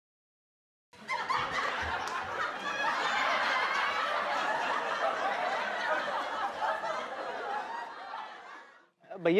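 Several men laugh loudly together.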